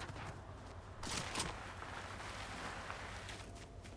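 Feet slide and rustle through tall grass.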